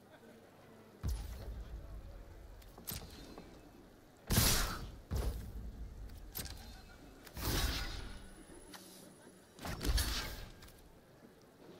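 Short game sound effects whoosh and thud.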